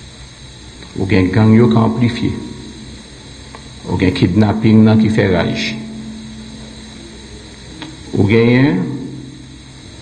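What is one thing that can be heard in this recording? A man speaks into a microphone in short, measured phrases with pauses.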